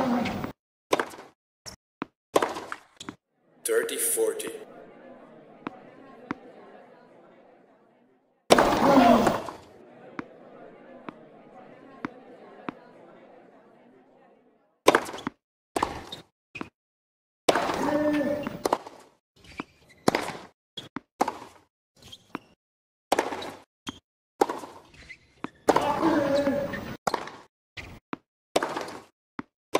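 Tennis balls are struck sharply by rackets, back and forth.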